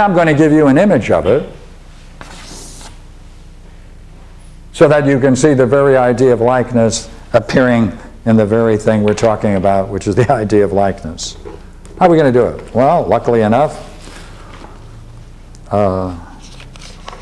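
An elderly man speaks calmly, lecturing close by.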